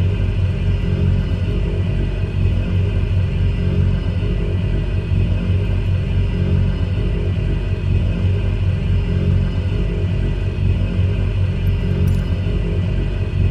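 A propeller aircraft engine drones steadily from inside the cockpit.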